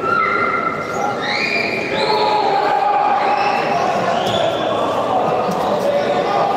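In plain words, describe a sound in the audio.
A crowd of spectators murmurs nearby.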